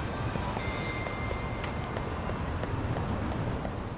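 Footsteps run quickly across paving stones.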